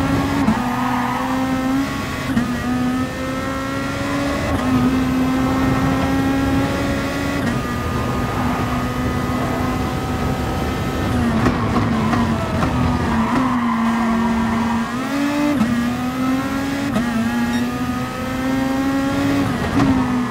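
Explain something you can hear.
A racing car engine roars loudly, rising in pitch through the gears and dropping as it brakes.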